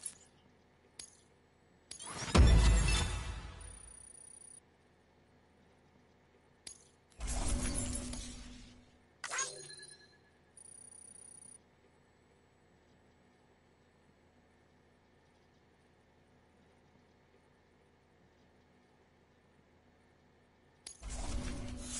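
Electronic menu whooshes and chimes play now and then.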